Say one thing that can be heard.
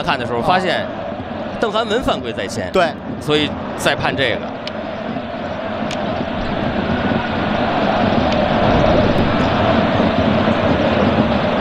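A large stadium crowd roars steadily, growing louder.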